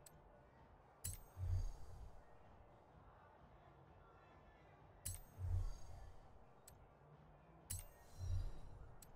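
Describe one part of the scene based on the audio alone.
Short game menu clicks sound, each followed by a deep thud.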